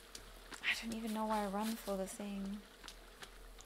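A young woman speaks briefly and with animation into a close microphone.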